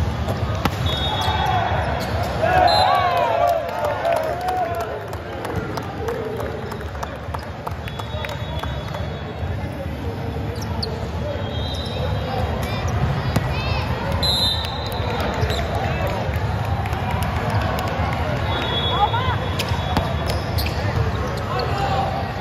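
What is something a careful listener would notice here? A volleyball is struck by hand.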